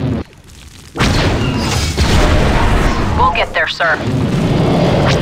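A large explosion booms and rumbles.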